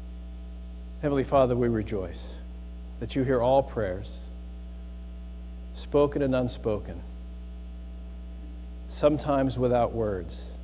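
A middle-aged man speaks calmly through a microphone in an echoing hall, with long pauses.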